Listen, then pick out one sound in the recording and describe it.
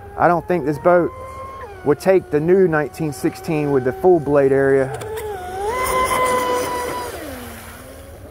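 Spray hisses off the water behind a fast boat.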